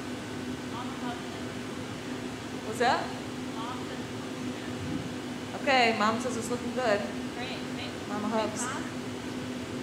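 A young woman speaks calmly through a headset microphone.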